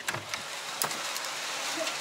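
A window creaks and swings open.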